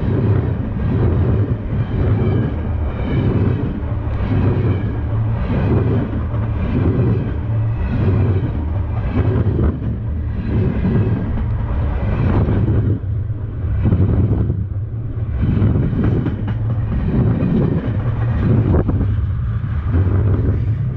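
A freight train rumbles past very close, loud and steady.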